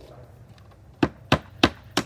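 A hammer taps nails into roof shingles.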